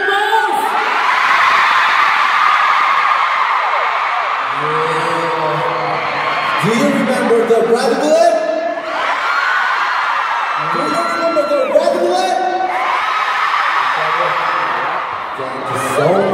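A large crowd screams and cheers loudly in a big arena.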